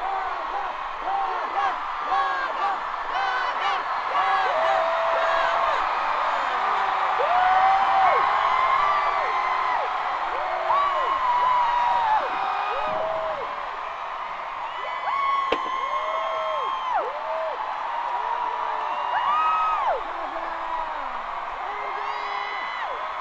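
A woman sings a pop melody.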